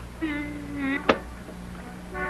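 Suitcase latches snap open.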